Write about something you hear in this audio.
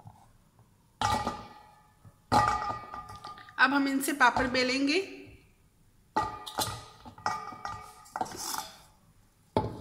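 Soft dough pieces drop into a metal bowl.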